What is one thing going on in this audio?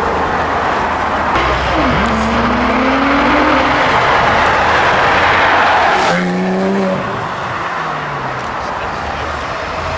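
Another sports car engine revs and rises in pitch as it pulls away.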